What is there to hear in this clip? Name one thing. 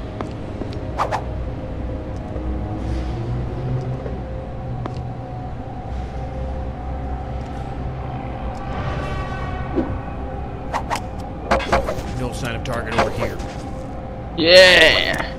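Soft game sound effects chime and swish.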